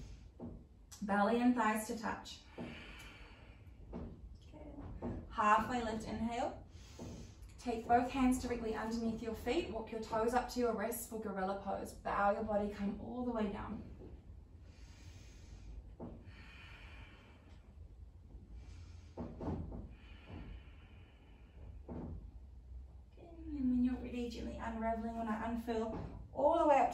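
A young woman speaks calmly and guides slowly, close to a microphone.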